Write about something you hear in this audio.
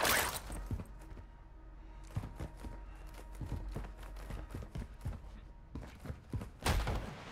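Footsteps tread steadily across a hard floor.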